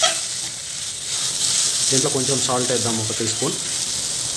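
A metal spoon scrapes and stirs soft food in a metal pan.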